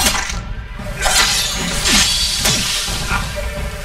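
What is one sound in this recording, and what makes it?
A magic blast crackles and hisses.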